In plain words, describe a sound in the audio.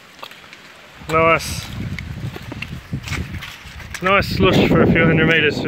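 Footsteps squelch through wet mud.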